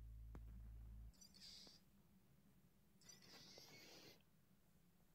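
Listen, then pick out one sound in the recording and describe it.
A game menu plays a soft whooshing sound as it switches.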